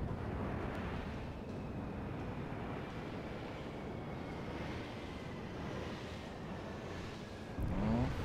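Shells whistle through the air in a long falling tone.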